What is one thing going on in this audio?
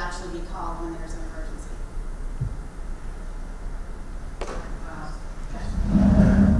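A woman speaks into a microphone in an echoing hall.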